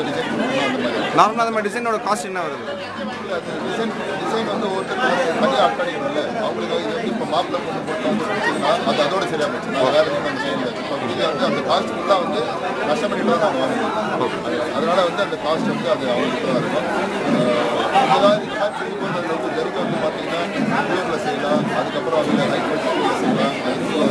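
A middle-aged man speaks steadily and earnestly into microphones close by.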